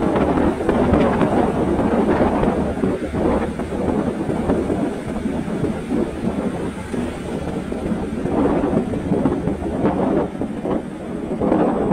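A motorbike engine hums steadily up close as it rides.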